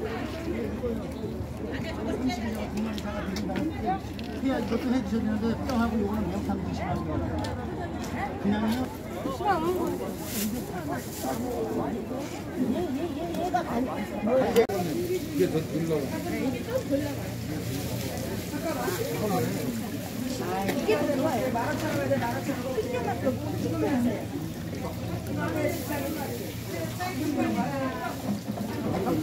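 Many men and women chatter nearby in a lively crowd.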